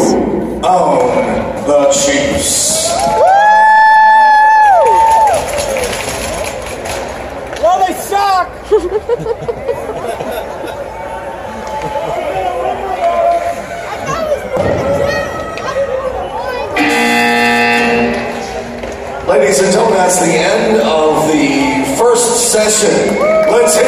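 A crowd chatters and cheers in a large echoing arena.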